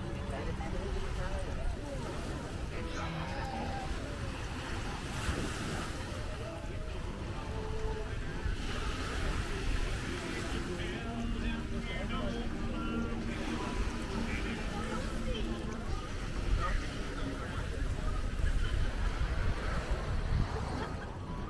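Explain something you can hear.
People chatter nearby in a relaxed crowd outdoors.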